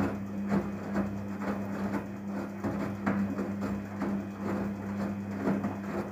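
Wet laundry sloshes and thumps inside a washing machine drum.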